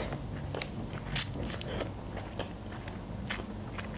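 Noodles are slurped up close.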